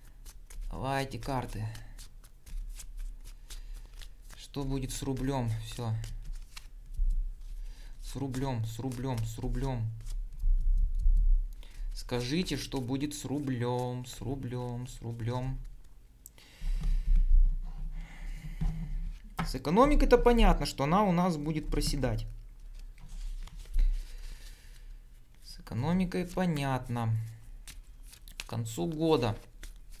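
Playing cards shuffle and snap softly between hands.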